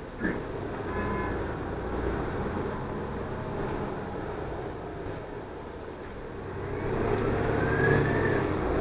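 A bus engine rumbles steadily as the bus drives and turns.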